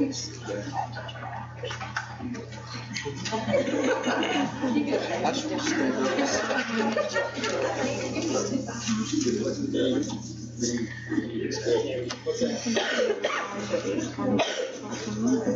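A woman talks calmly.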